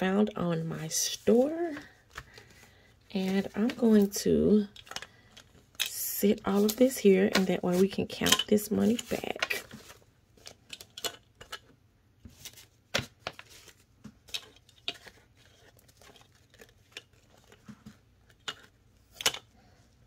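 Paper banknotes rustle and crinkle as they are handled and counted.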